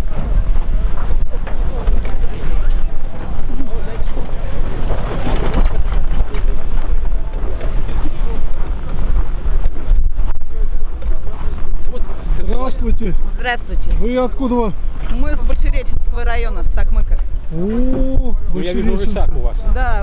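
Wind rumbles loudly across the microphone outdoors.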